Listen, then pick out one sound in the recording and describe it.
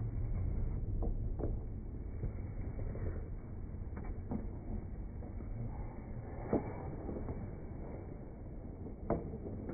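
A hockey stick taps sharply on the ice.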